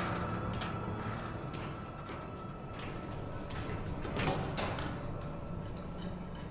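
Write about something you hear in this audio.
Footsteps clank on a metal ladder and walkway.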